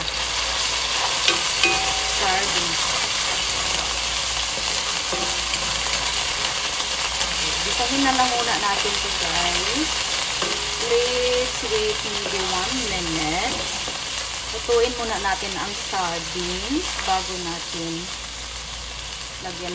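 A wooden spatula scrapes against a pan.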